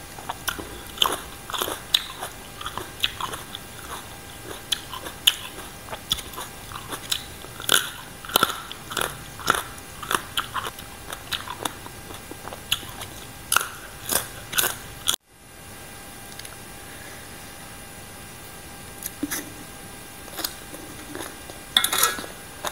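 Crisp raw vegetables crunch as they are bitten and chewed close to a microphone.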